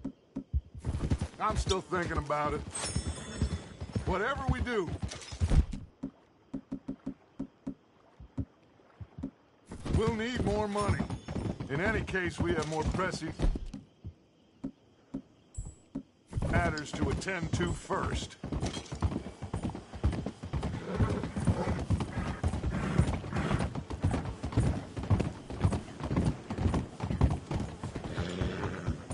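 Horse hooves clop along a dirt path and then a wooden bridge.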